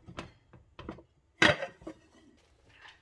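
A ceramic plate clatters against a frying pan.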